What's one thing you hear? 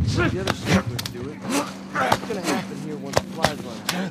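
A struggle thuds and scuffles close by.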